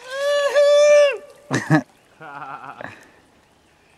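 Water splashes as a man swings a wet cloth.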